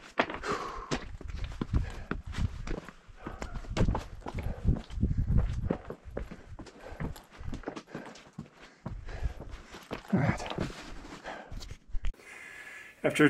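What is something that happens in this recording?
Footsteps crunch over loose rock.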